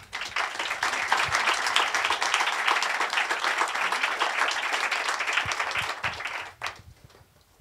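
An audience applauds loudly in a large room, then stops.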